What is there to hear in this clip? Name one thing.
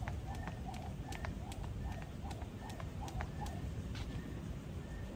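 A skipping rope slaps the pavement in quick, even beats.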